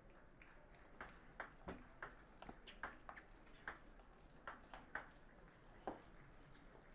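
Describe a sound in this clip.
A ping pong ball clicks sharply back and forth between paddles and table in a rally.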